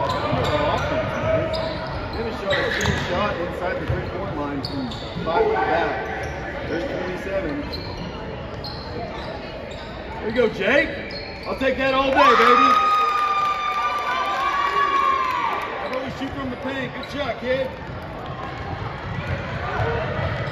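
Sneakers squeak on a hardwood court in an echoing gym.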